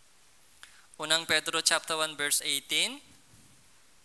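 A young man speaks briefly and clearly into a microphone.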